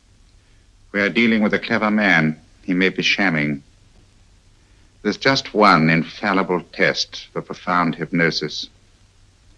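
A man speaks calmly and earnestly close by.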